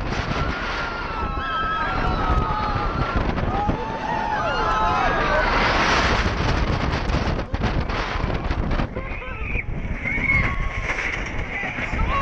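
Young riders scream and shriek excitedly.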